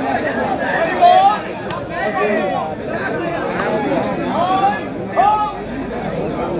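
Spectators cheer loudly.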